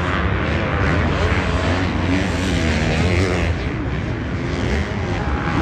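Dirt bike engines roar and rev nearby.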